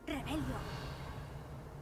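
A magical shimmer twinkles.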